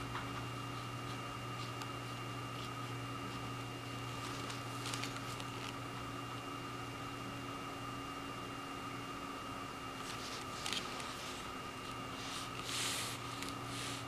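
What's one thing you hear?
A brush swishes and taps softly on paper.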